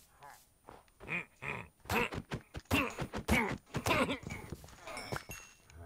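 A sword strikes a creature with quick thudding blows.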